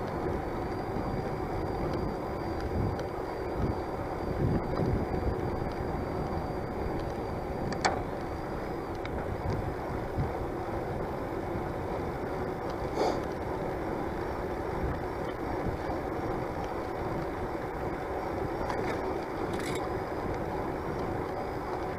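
Wind rushes steadily past a microphone.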